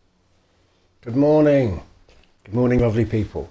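A middle-aged man speaks calmly and warmly, close by.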